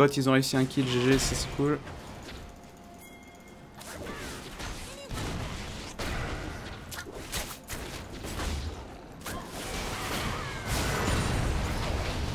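Magic spell effects whoosh and burst in a game.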